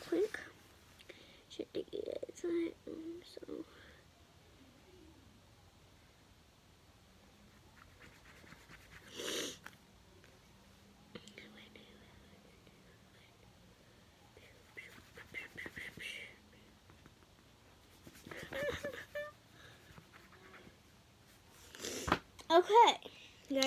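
A young girl reads aloud softly and haltingly, close by.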